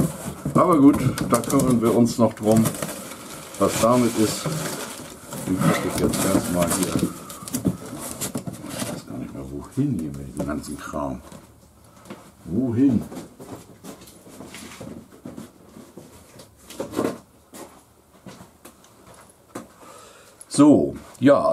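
A middle-aged man talks calmly, close to the microphone.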